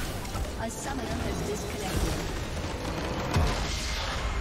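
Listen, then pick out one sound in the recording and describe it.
Magic blasts and impacts crash in a game battle.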